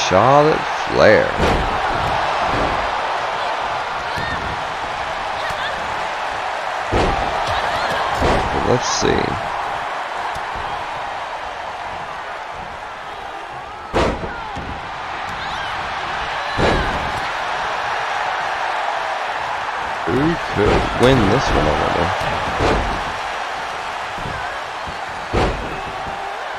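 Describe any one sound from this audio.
Bodies slam hard onto a wrestling ring mat with heavy thuds.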